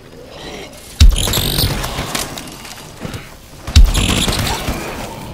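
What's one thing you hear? An energy weapon fires with an electric zapping blast.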